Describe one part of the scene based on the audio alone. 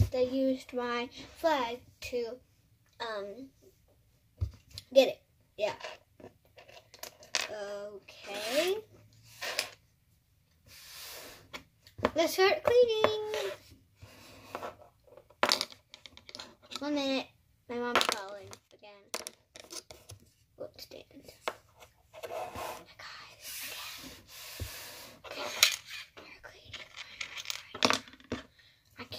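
A young girl talks with animation close to the microphone, putting on play voices.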